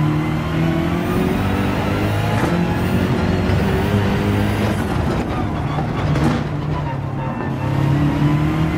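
A racing car engine roars loudly, its pitch rising and falling through gear changes.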